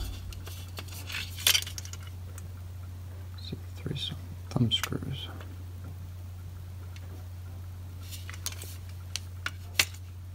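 Metal parts of a small stove clink and tap as a hand turns it.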